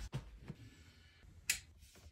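A lamp is set down on a mirrored nightstand.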